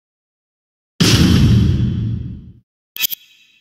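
A game menu plays a low whooshing sound effect.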